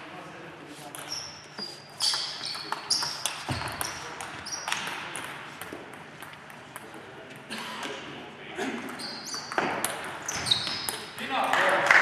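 Shoes squeak sharply on a hall floor.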